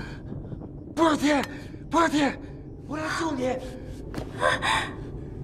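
A young woman speaks in an urgent voice.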